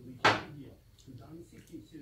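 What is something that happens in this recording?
A knife and fork clink against a plate.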